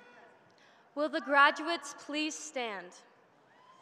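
A young woman speaks into a microphone, reading out clearly.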